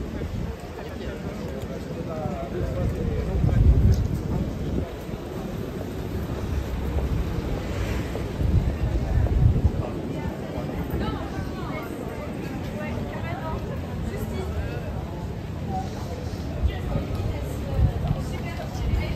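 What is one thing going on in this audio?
Men and women chatter nearby and in the distance on a busy street outdoors.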